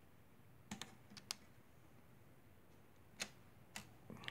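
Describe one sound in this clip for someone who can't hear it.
Fingers click and tap on plastic parts.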